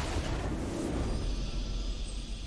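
A triumphant fanfare swells.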